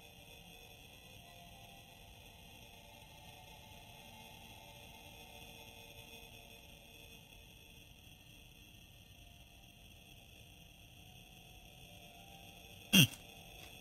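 A spaceship engine hums steadily.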